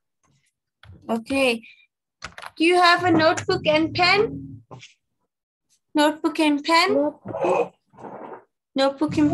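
A young woman speaks clearly and with animation over an online call.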